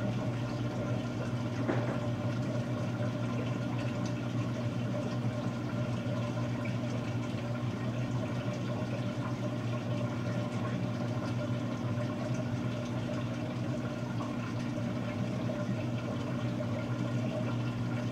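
Water sloshes as laundry churns in a washing machine.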